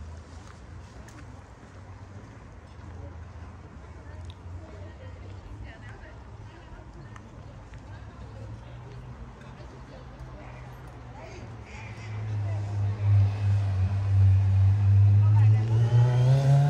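Men and women chat quietly at nearby outdoor tables.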